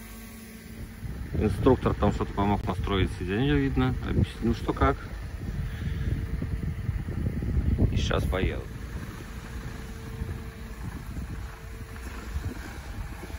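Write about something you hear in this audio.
A truck engine rumbles nearby.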